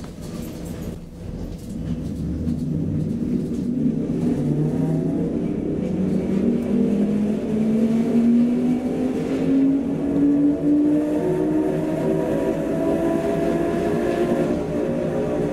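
A train's motor hums and whines, rising steadily in pitch as the train speeds up.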